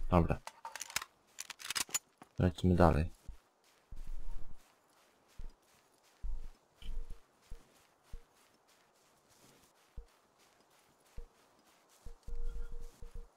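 Footsteps thud on grass and gravel.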